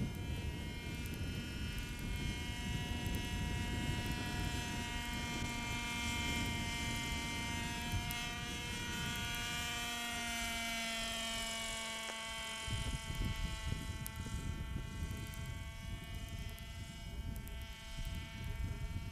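A model helicopter's engine whines steadily overhead, its pitch shifting as it climbs and swoops.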